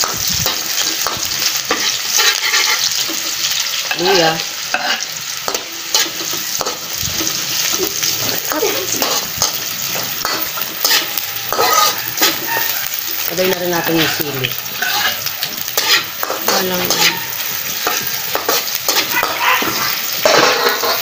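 A metal spatula scrapes and clatters against a metal pan.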